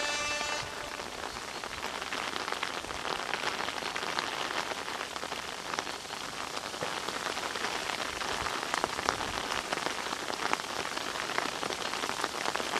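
Many runners' feet patter on a wet road, coming closer.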